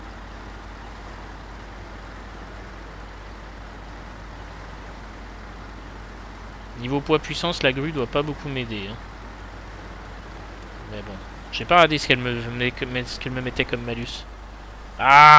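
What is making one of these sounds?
A heavy truck engine rumbles steadily as the truck crawls over rough ground.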